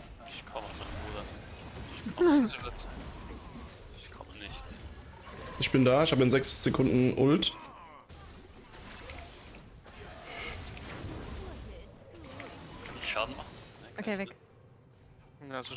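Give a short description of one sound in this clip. Magic spells whoosh and burst in quick bursts of fighting.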